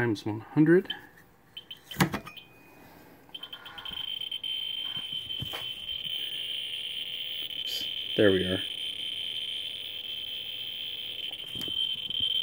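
A radiation counter clicks now and then.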